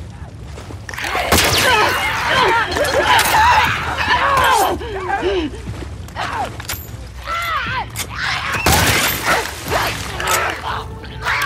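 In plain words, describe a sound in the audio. A creature shrieks and snarls wildly.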